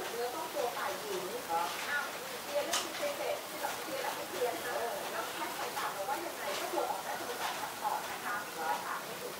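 Baby birds chirp and squeak busily close by.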